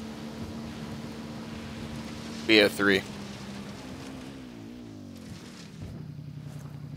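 A motorbike engine hums steadily, then its pitch drops as it slows.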